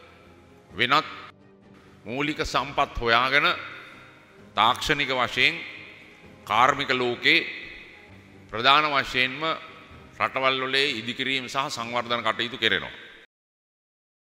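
An elderly man speaks slowly and firmly into a microphone, with echo over loudspeakers.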